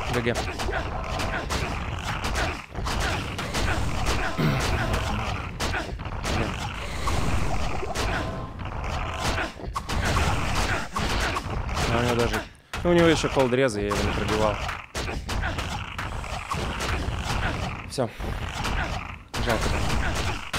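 Game sound effects clash and boom.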